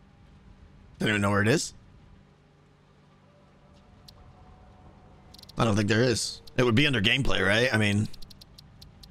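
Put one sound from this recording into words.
A man speaks calmly and close into a microphone, in short bursts.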